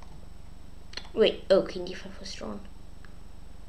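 A young boy speaks briefly and quietly, close to a microphone.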